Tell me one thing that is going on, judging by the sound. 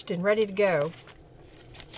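A woman speaks through a microphone in a lively voice.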